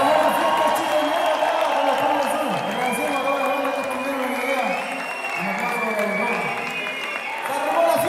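A live band plays loudly through a large hall's speakers.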